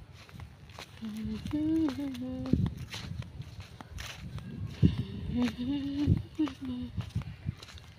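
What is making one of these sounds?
A young woman sings softly close by.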